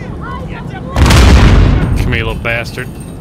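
An explosion booms loudly and rumbles away.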